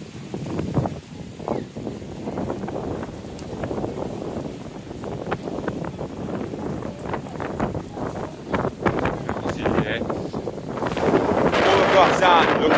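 Strong wind buffets the microphone outdoors.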